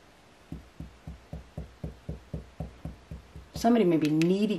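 Fingers tap rhythmically on a soft tabletop.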